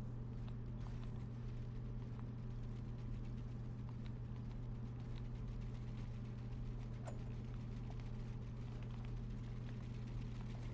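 Building pieces snap into place with short, sharp clicks.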